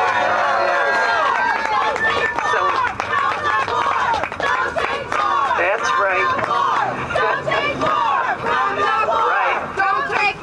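An elderly woman speaks passionately into a microphone outdoors, heard through a loudspeaker.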